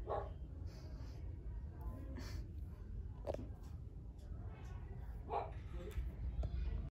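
Long fingernails tap and click softly up close.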